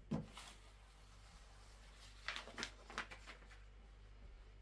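Cloth rustles and swishes as it is folded.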